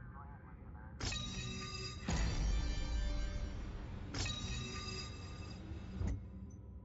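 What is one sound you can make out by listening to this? A bright game fanfare rings out for a level-up.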